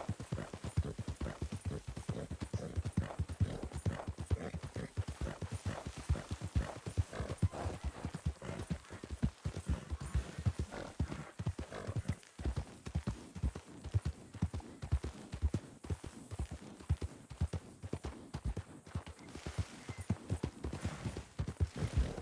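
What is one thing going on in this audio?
Horse hooves pound rapidly on dry ground at a gallop.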